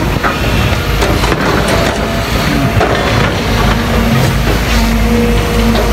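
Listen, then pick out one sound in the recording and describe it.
A hydraulic excavator's engine works as it digs into earth.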